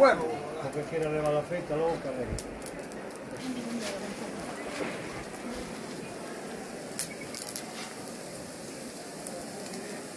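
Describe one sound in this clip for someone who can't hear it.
Meat sizzles softly over hot embers.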